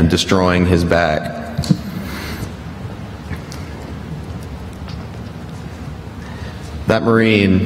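A young man speaks through a microphone in an echoing hall, pausing between phrases.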